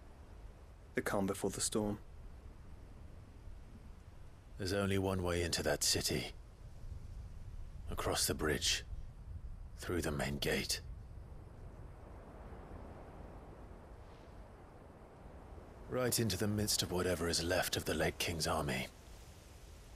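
A man speaks calmly and low, close by.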